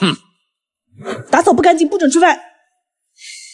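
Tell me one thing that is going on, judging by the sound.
A young woman speaks sharply close by.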